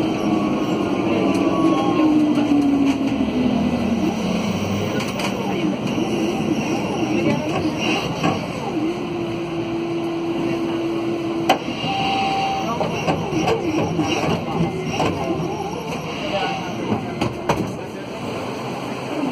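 A bus engine hums steadily as the bus rolls along.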